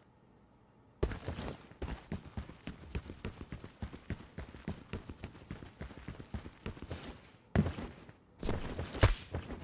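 Footsteps crunch quickly on a hard surface.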